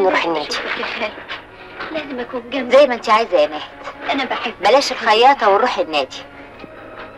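A middle-aged woman speaks calmly and close by.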